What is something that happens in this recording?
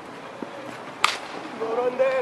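A cricket bat cracks against a ball outdoors.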